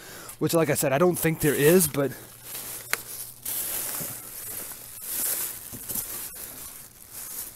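Plastic sheeting rustles and crinkles close by.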